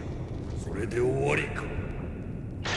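A man grunts with strain.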